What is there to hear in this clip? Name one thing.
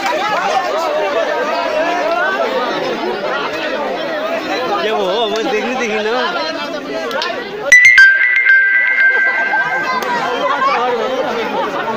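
A large crowd chatters and calls out loudly nearby.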